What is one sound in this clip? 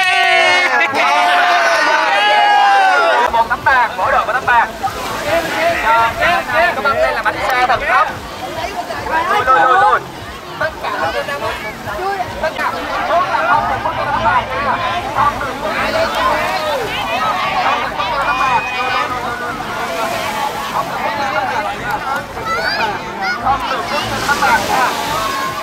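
A crowd of young people chatter and shout outdoors.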